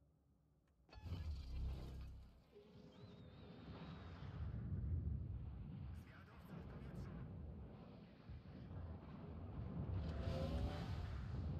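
Heavy guns fire with deep, rumbling booms.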